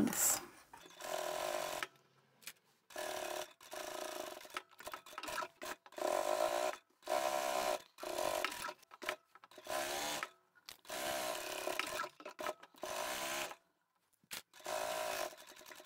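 A sewing machine whirs in short bursts, stopping and starting again.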